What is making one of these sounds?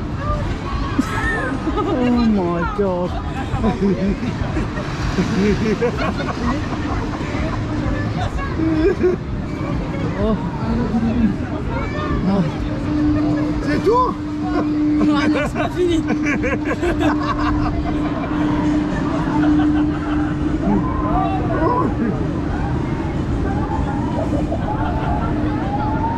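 A fairground ride whirs and rumbles steadily.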